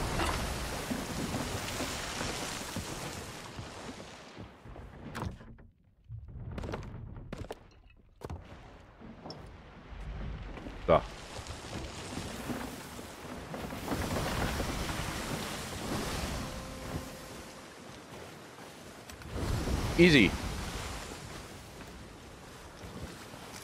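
A man talks into a close microphone.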